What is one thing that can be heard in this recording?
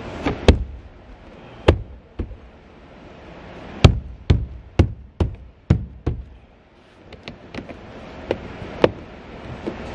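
Hard knocks and thumps sound close by inside a car's boot.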